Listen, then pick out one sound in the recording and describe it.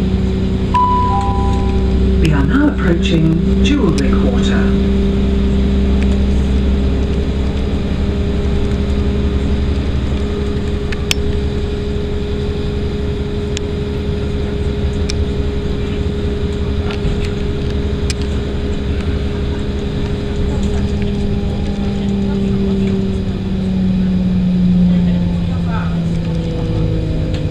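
Train wheels clatter over the rail joints.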